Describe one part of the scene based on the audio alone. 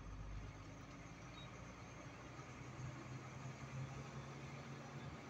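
Road noise rumbles as the truck drives along.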